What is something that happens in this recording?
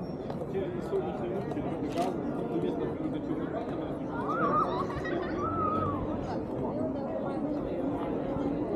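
A crowd of people chatter nearby, outdoors in the open.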